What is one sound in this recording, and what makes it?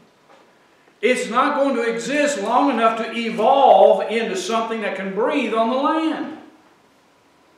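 An older man speaks with animation, as if preaching.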